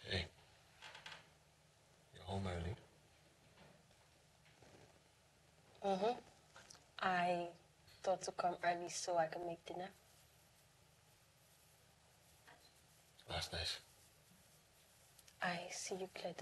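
A man speaks softly nearby.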